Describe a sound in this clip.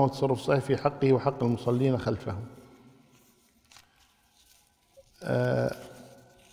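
An elderly man reads out calmly into a microphone.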